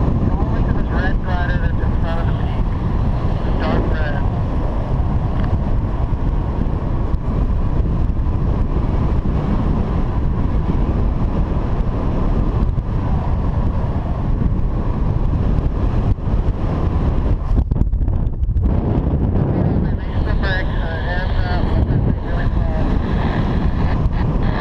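Strong wind roars and buffets loudly against the microphone.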